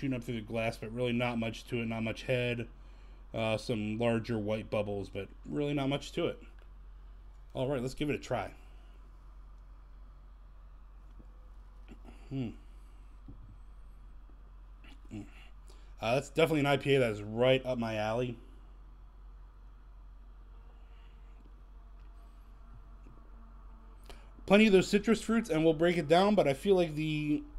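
A middle-aged man talks into a close microphone with animation.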